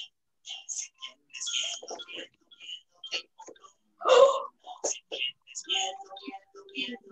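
A young woman sings a children's song with animation over an online call.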